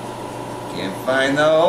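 A man speaks briefly up close.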